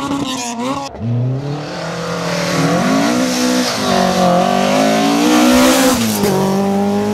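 A rally car engine revs hard, rising and falling as it accelerates through a bend.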